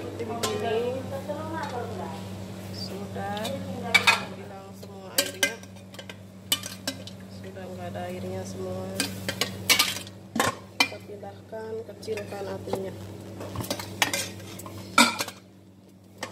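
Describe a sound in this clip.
A metal pot lid clanks against a pot.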